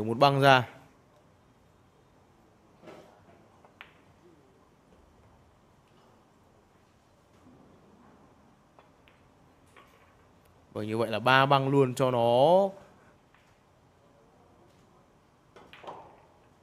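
A cue tip strikes a pool ball with a sharp click.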